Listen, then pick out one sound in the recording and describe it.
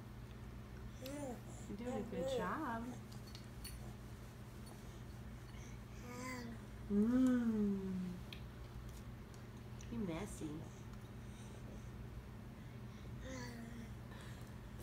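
A young woman talks softly and sing-song to a baby nearby.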